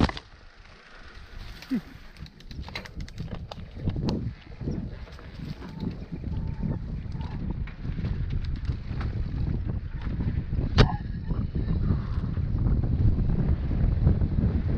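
A bike's frame and chain rattle and clatter over bumps.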